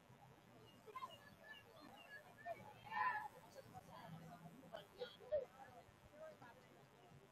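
Young women on a team shout and cheer in the distance.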